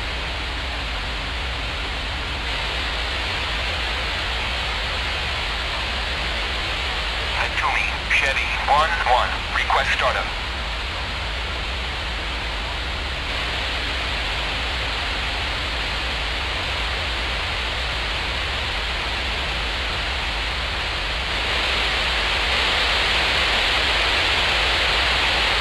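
A jet engine hums and whines steadily inside a cockpit.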